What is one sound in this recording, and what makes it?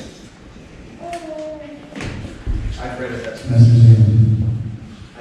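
A man speaks calmly, heard from across an echoing room.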